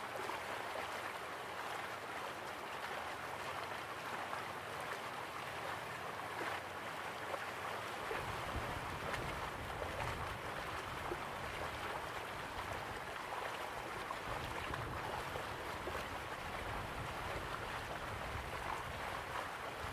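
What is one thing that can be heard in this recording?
A stream splashes over rocks nearby.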